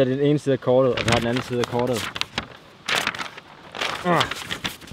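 A paper map rustles as it is lifted and moved.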